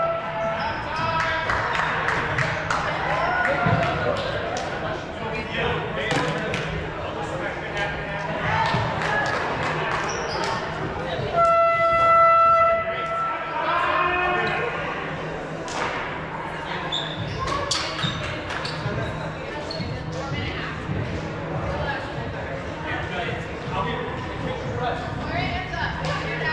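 Balls thump and bounce on the floor.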